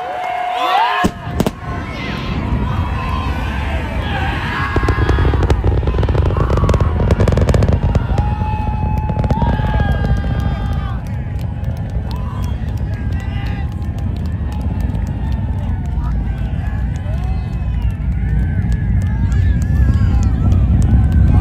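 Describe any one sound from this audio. A rocket's engine roars with a deep, distant rumble that grows louder.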